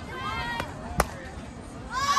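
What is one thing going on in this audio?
A bat strikes a softball with a sharp crack.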